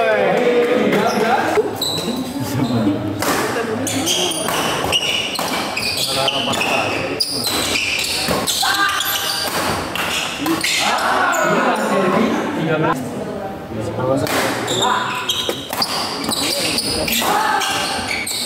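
Shoes squeak on a hard court floor.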